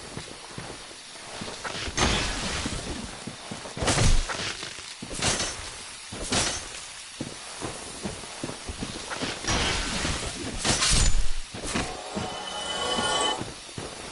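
Armoured footsteps crunch through undergrowth.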